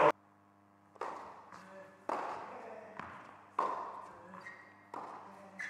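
A tennis ball bounces on a hard court several times.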